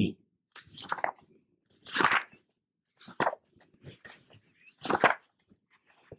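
Paper pages rustle and flip quickly, close by.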